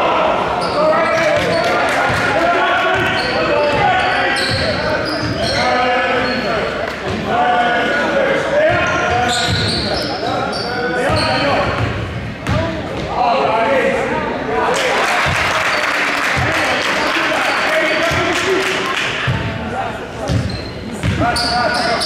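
A basketball bounces on the floor as a player dribbles.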